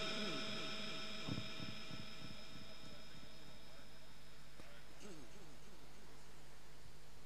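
An elderly man chants melodically into a microphone, heard through loudspeakers.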